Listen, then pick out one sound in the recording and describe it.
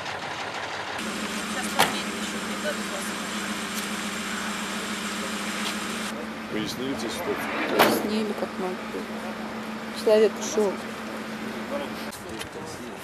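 A vehicle engine idles steadily nearby.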